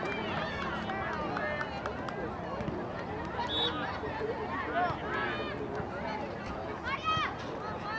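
Young players shout and call to each other outdoors on an open field.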